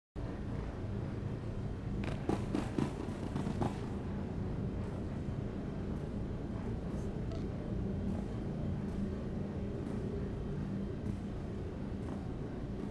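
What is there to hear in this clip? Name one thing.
A low electronic hum drones steadily.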